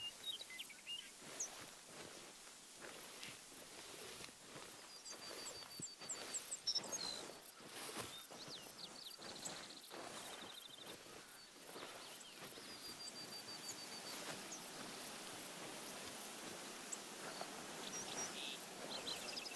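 Tall dry grass rustles and swishes while someone pushes through it.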